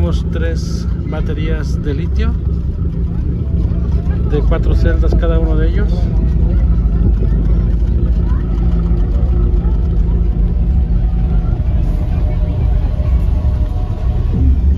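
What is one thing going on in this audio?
Loud, booming bass music plays from a car sound system.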